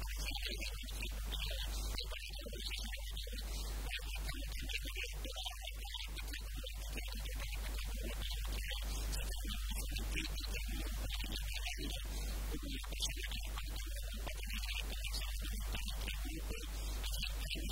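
A middle-aged man speaks calmly into a microphone, close by.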